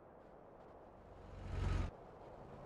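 Another car passes close by with a loud rush.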